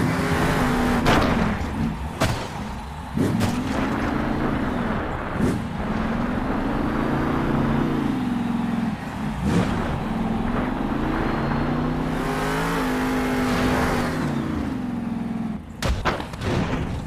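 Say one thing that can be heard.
A monster truck slams down hard with heavy thuds.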